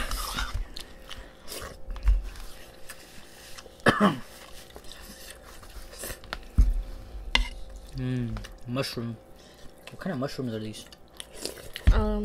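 Spoons and chopsticks clink against bowls.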